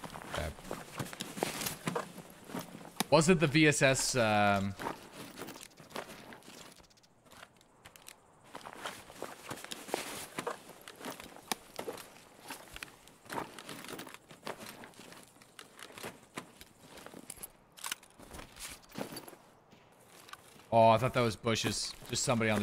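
A man talks into a close microphone in a calm, casual voice.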